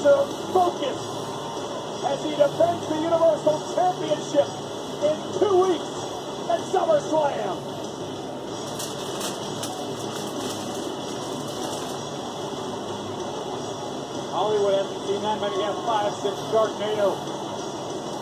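A middle-aged man talks casually close by.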